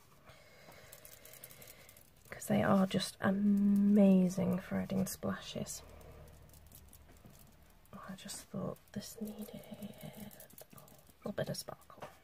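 A stiff brush dabs and scrubs on paper.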